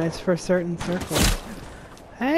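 A wooden wall is built with a quick knock.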